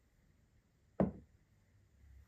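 A heavy metal part thuds down on a wooden table.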